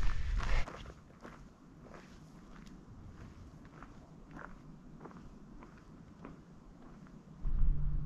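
Footsteps crunch softly on a dirt trail.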